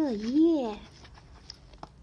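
Paper pages riffle as a book is flipped through.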